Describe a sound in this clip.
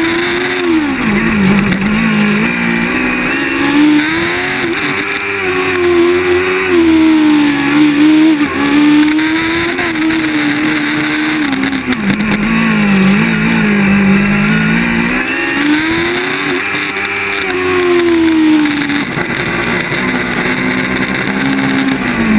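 A race car engine revs loudly up and down close by.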